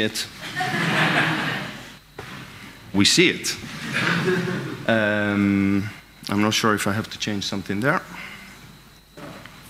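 A man speaks calmly into a microphone over loudspeakers in a large echoing hall.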